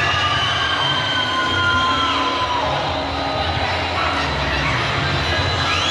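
Music plays loudly over loudspeakers in a large echoing hall.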